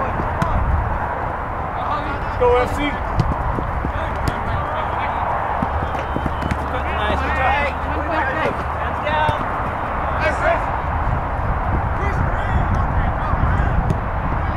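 Young men shout to each other across a field.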